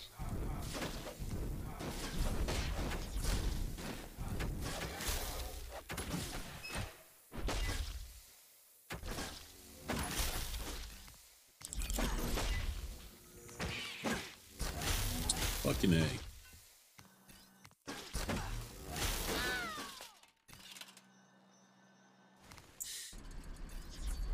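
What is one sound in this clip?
Magic zaps and whooshes burst out over and over.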